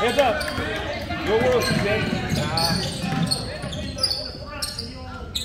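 Spectators call out and cheer in a large echoing gym.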